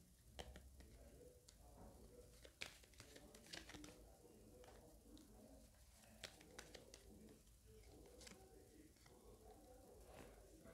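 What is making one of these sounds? Playing cards tap and slide softly as they are laid down one by one.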